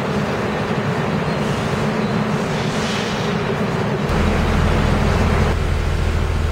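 A subway train rushes past with a loud rumble.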